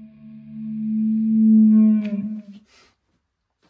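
An electric guitar chord rings out and fades.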